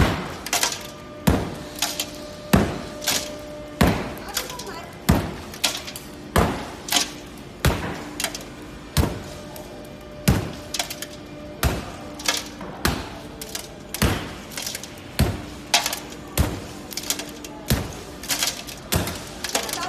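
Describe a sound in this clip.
A hammer strikes a cracked glass pane again and again with sharp, ringing thuds.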